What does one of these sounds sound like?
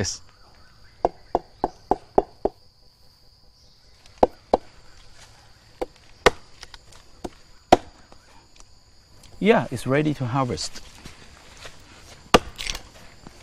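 A knife taps and scrapes against tree bark.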